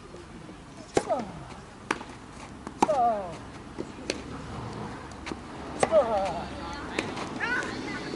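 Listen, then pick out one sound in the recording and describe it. A tennis racket strikes a ball with sharp pops.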